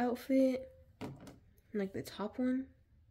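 A plastic doll clicks softly as hands handle it.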